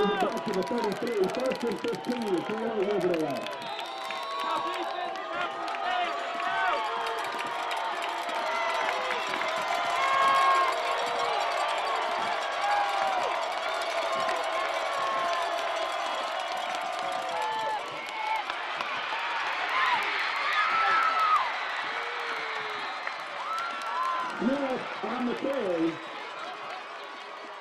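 A large outdoor crowd of spectators cheers and shouts.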